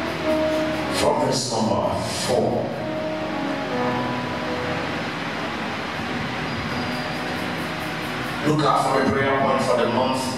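A man speaks with emotion into a microphone, heard through loudspeakers.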